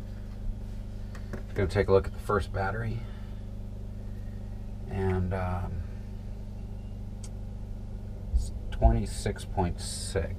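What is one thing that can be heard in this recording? Tools click against metal battery terminals.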